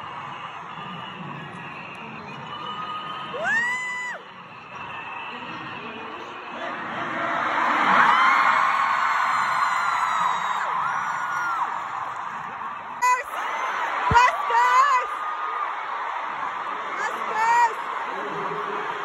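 A large crowd of young women cheers and screams loudly in a huge echoing arena.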